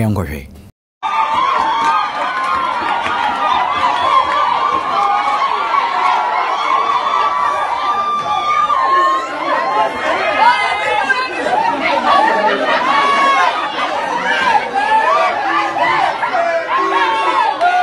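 A crowd of young people shouts and cheers close by.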